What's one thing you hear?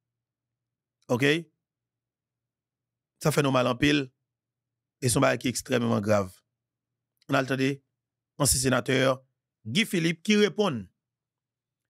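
A young man speaks into a close microphone in short bursts with pauses.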